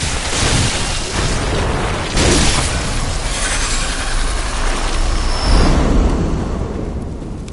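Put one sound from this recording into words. Heavy blows thud and squelch against a writhing creature.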